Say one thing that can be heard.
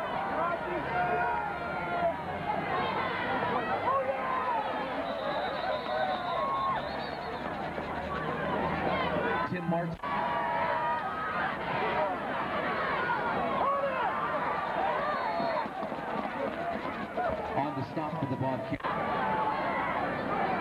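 A crowd of spectators cheers and shouts in an open stadium.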